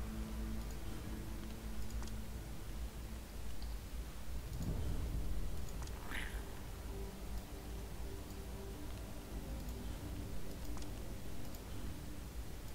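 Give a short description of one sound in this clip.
Soft game menu clicks tick now and then.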